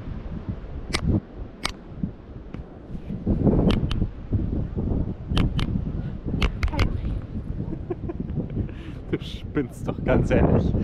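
A gull pecks and taps against the microphone.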